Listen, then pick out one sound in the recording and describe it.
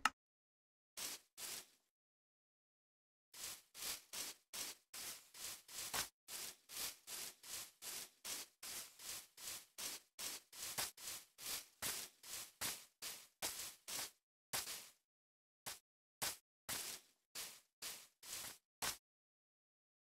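Footsteps crunch quickly on grass and gravel.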